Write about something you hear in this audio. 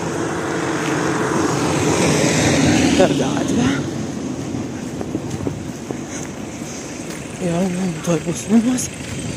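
A woman speaks close to a phone microphone, outdoors.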